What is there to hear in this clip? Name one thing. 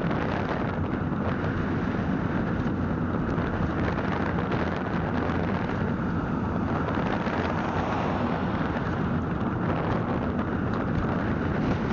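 An engine hums steadily as a vehicle drives along a road.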